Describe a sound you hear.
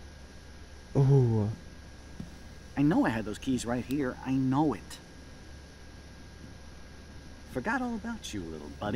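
A man talks to himself, puzzled and searching.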